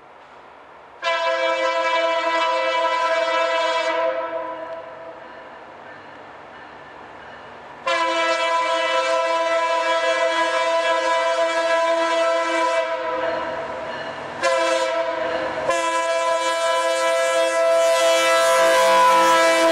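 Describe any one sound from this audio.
A diesel locomotive horn blows loud, long blasts.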